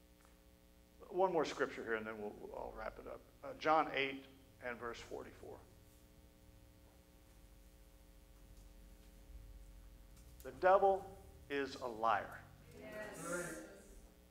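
A man speaks calmly into a microphone, heard through a loudspeaker in an echoing hall.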